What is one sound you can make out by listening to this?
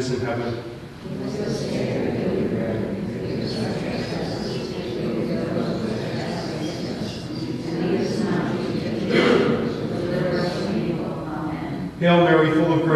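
An elderly man speaks calmly, reading aloud through a microphone.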